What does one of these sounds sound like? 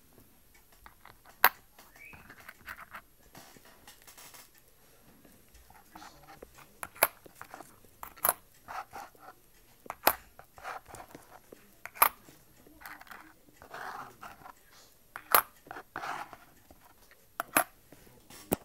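Coins clink and click as they are picked up and set down on cardboard.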